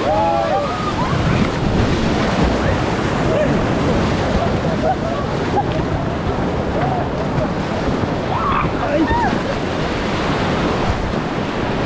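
Waves splash hard against the side of a raft.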